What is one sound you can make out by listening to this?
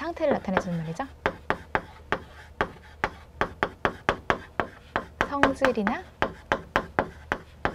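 Chalk taps and scrapes rapidly on a blackboard.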